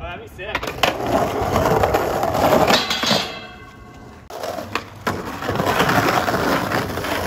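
Skateboard wheels roll and rumble over rough pavement.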